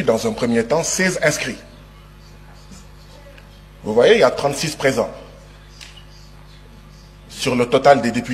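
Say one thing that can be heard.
A man speaks forcefully into a microphone, pausing between phrases.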